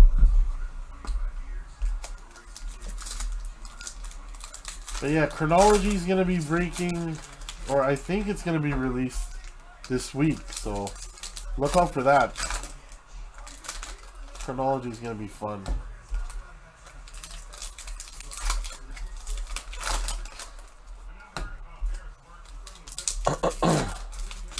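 A foil card wrapper crinkles and tears under fingers.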